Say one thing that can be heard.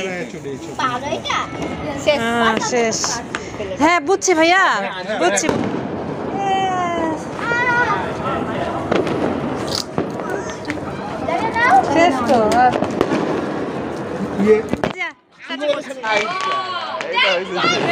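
Young girls laugh and shout excitedly nearby.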